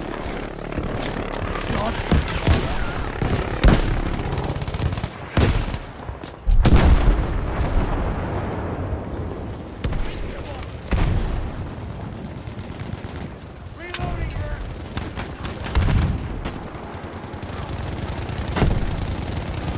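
Distant explosions and gunfire thud repeatedly.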